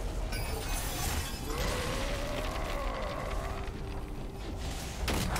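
Magic spells blast and whoosh during a game battle.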